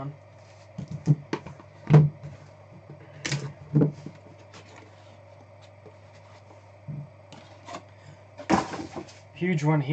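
A plastic card case clacks and taps.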